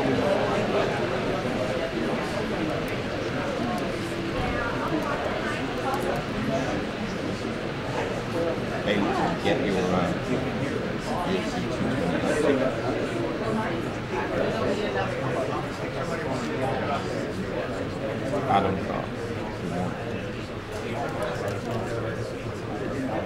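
A crowd of people chatter in a large echoing room.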